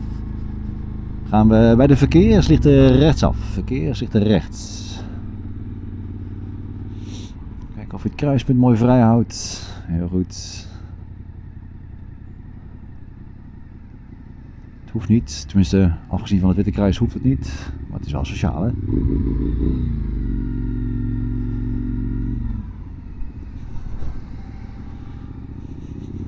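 A motorcycle engine hums and revs while riding.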